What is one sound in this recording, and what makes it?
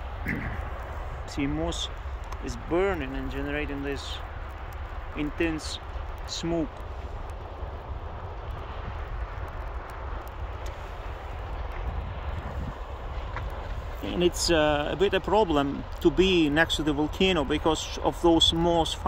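Flames crackle in burning grass.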